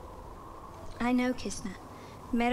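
A young woman speaks softly and sadly, close by.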